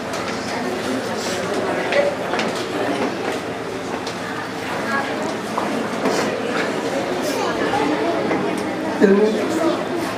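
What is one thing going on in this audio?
A man speaks emotionally into a microphone, heard through a loudspeaker in an echoing hall.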